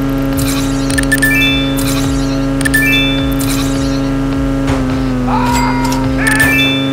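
Bright electronic chimes ring out as coins are collected.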